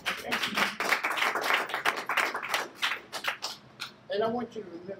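An audience claps.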